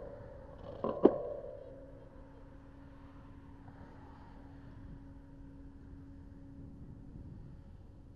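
A car engine hums as the car rolls slowly past.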